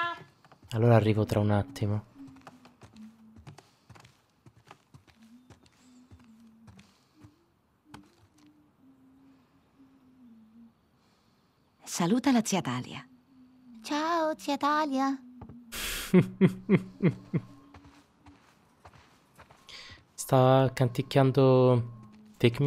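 A young woman talks softly and warmly, close by.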